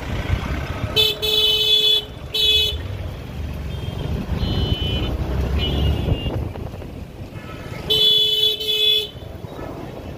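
A vehicle horn blares loudly in short blasts.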